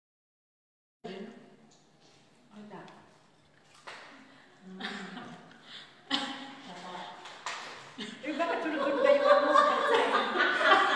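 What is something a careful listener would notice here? Several women talk and laugh nearby.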